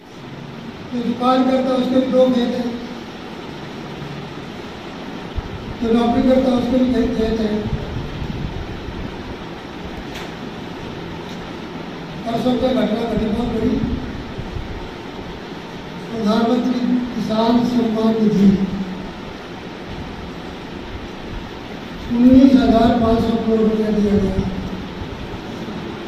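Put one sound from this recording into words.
An elderly man speaks slowly into a microphone over a loudspeaker, with long pauses, in an echoing room.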